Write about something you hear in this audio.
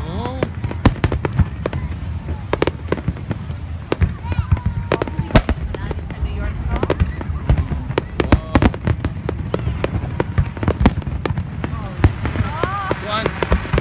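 Fireworks whistle as they rise.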